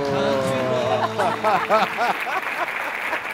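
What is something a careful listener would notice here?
An older man laughs heartily.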